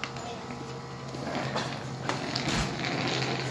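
A small wheeled case rolls and rattles over concrete.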